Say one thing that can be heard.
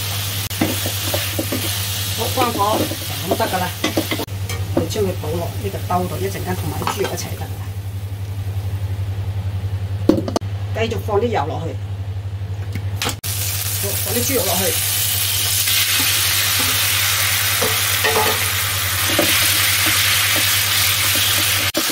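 A wooden spatula scrapes and stirs food in a metal wok.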